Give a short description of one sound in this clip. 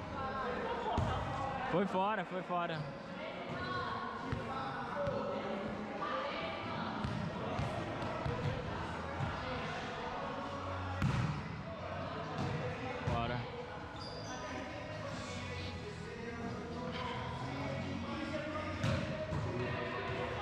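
A volleyball thumps off hands and arms.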